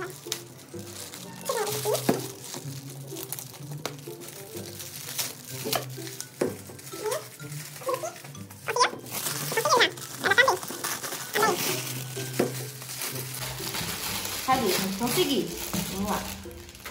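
Foil wrapping crinkles and rustles as hands tear it open.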